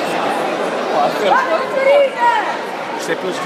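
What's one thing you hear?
Men in the crowd shout loudly to cheer on the wrestlers.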